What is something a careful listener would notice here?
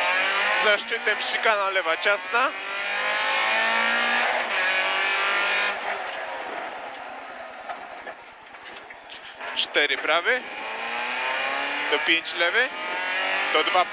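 A car engine roars loudly up close, revving up and down.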